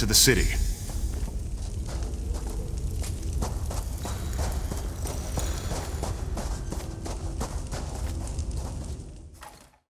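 Footsteps crunch steadily on gravel.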